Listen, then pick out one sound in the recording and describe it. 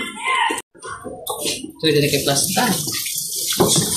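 Water runs from a tap and splashes into a basin.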